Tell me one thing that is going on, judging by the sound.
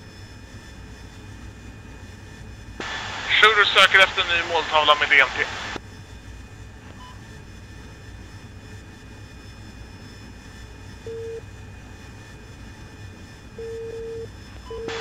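A jet engine hums steadily.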